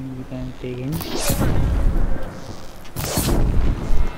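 A fiery arrow whooshes and bursts with a crackling roar.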